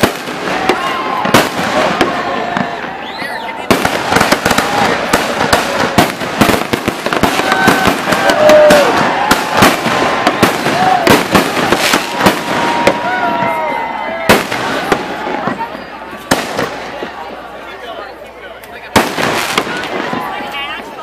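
Fireworks bang and crackle loudly in rapid bursts outdoors.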